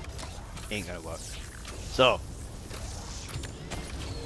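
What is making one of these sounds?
Electric sparks crackle and hiss as a machine works.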